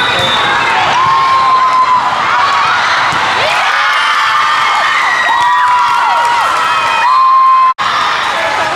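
A referee's whistle blows in long shrill blasts.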